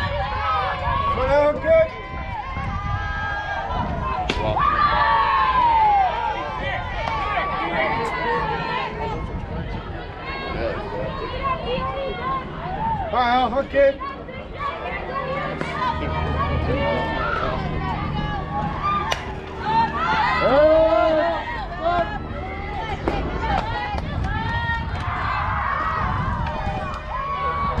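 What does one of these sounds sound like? Young women and girls cheer and shout nearby outdoors.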